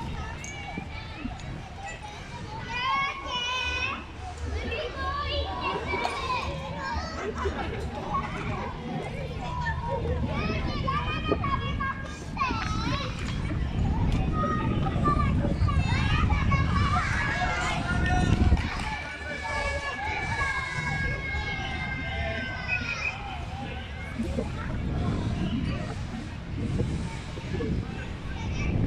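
Children shout and call out in the distance.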